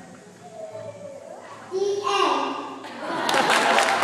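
A young girl speaks into a microphone in an echoing hall.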